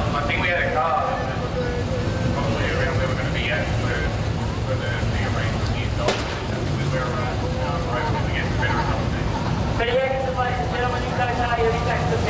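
Sprint car V8 engines roar around a dirt track.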